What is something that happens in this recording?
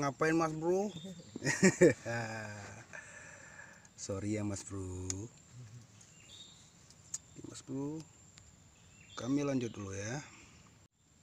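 A man talks close by in short bursts.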